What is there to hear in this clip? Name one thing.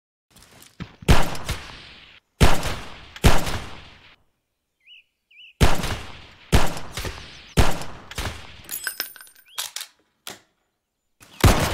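A handgun fires sharp single shots.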